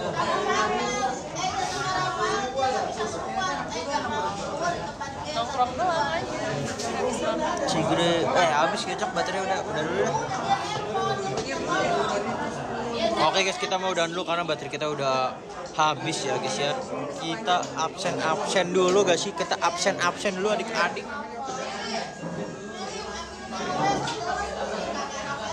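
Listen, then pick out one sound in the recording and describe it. A young man talks close up with animation.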